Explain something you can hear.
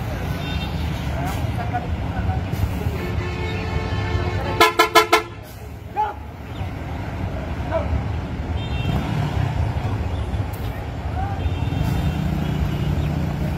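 A bus engine rumbles low as the bus rolls slowly past.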